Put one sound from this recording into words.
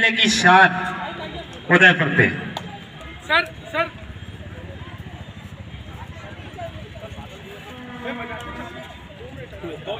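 Young men shout and call out loudly.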